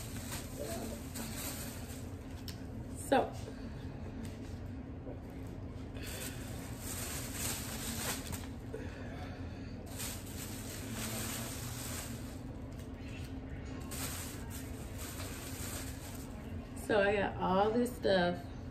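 Soft fabric rustles as clothes are handled.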